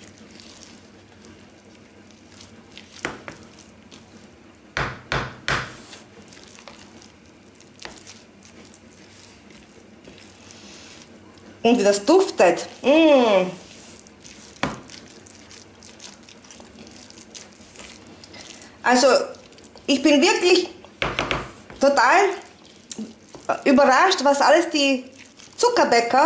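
A plastic spoon stirs a thick, sticky mixture in a plastic tub, scraping and knocking against the sides.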